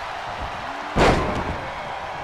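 A heavy body slams onto a wrestling ring with a loud thud.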